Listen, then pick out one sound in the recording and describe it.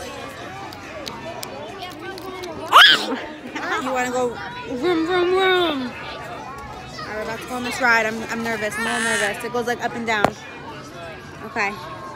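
A small child babbles and squeals close by.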